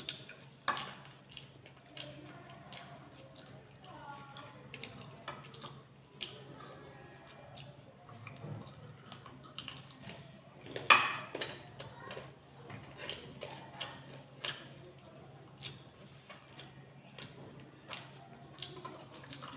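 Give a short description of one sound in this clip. Fingers scrape and tap on a plate.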